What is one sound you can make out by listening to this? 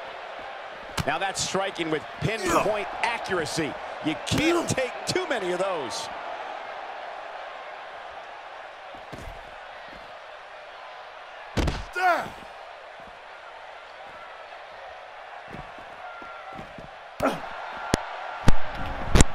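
Blows and body slams thud heavily.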